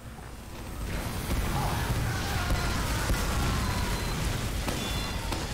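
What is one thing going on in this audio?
Guns fire rapidly.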